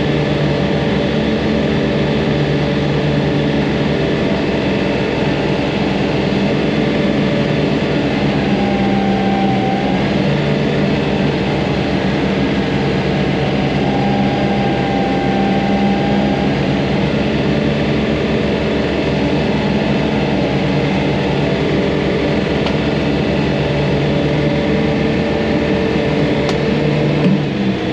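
Tall grass swishes against the tractor as it is mown.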